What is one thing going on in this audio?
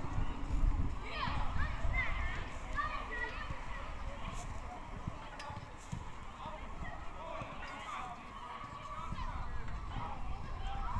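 Children shout and call out outdoors.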